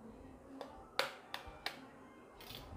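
An egg taps against the rim of a metal jar.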